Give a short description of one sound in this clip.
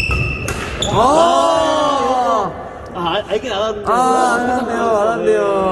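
Young men shout and cheer after the rally.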